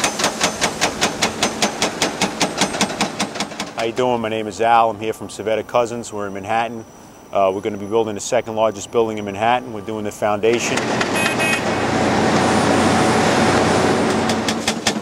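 A hydraulic hammer pounds rock in rapid, loud blows.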